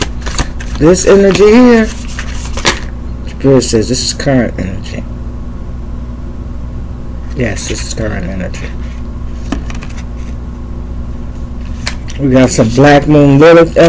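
Playing cards riffle and slap as they are shuffled.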